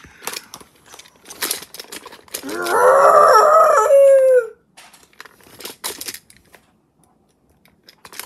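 Plastic toy figures knock and rustle against bedding.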